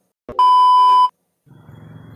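A loud steady test tone beeps.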